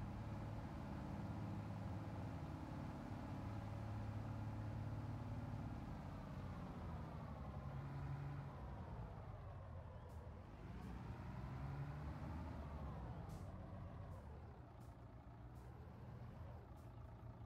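A truck engine rumbles steadily, its pitch dropping and rising as the truck slows and shifts gears.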